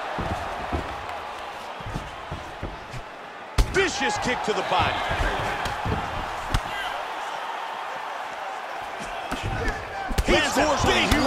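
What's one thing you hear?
Punches thud against a fighter's body.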